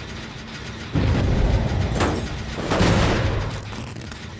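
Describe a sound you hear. A machine engine rumbles and rattles nearby.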